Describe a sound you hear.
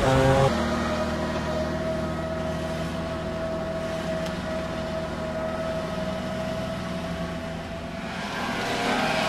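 Tyres splash through a shallow ford.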